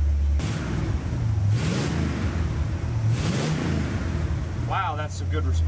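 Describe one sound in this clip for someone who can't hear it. An engine revs up and settles back down.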